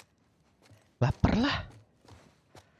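A young man speaks loudly and with animation into a microphone.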